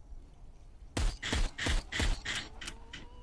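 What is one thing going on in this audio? Gunshots from a game revolver ring out in quick succession.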